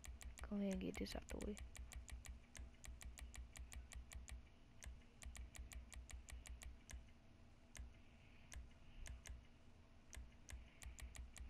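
Short menu clicks tick rapidly and steadily.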